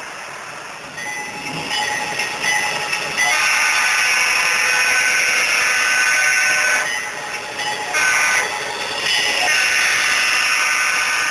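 A diesel locomotive engine drones loudly as it approaches.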